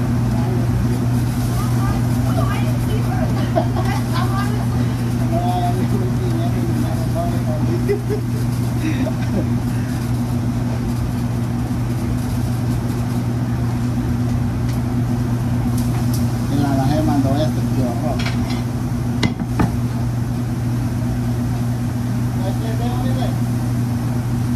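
A middle-aged man talks and laughs nearby.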